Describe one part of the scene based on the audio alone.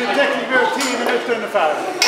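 A small crowd claps hands.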